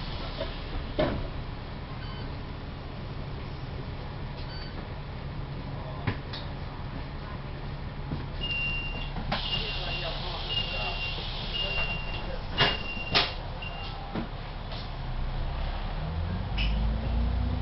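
Loose panels inside a bus knock and rattle now and then.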